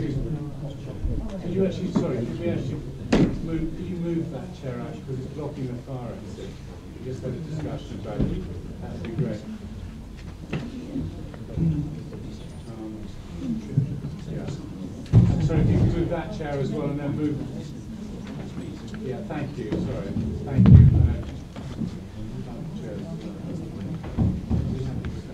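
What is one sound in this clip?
An elderly man speaks calmly into a microphone in a large room.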